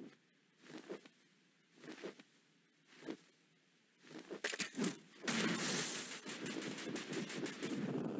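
Small shots fire in rapid bursts.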